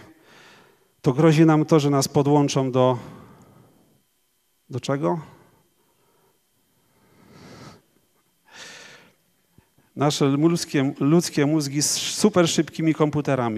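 A middle-aged man speaks calmly into a microphone, pausing between phrases.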